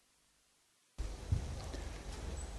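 A man's footsteps sound on a hard floor.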